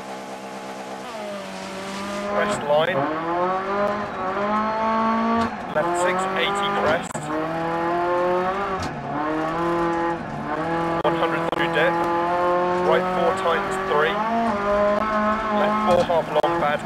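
A turbocharged four-cylinder rally car engine revs hard, climbing and dropping through the gears.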